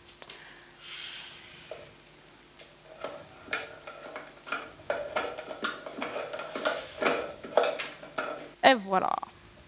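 A cockatoo scrapes and taps a stick against a box.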